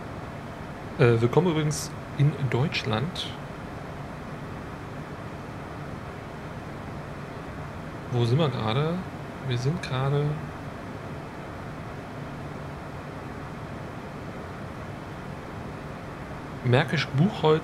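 A man talks calmly into a close microphone, in short bursts.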